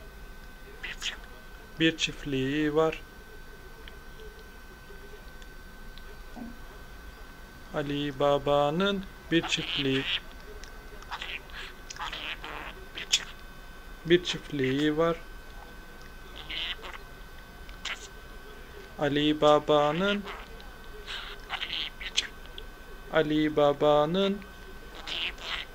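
A budgie chirps and chatters softly up close.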